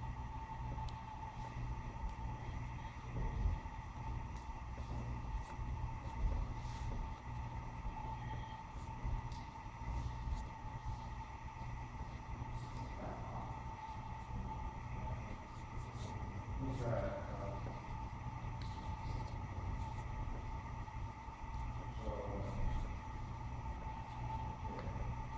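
Clothing rustles as two people grapple.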